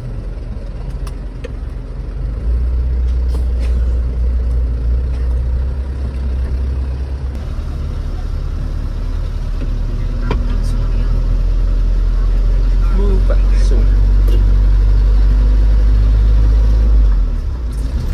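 Loose items rattle and clunk inside the truck cab.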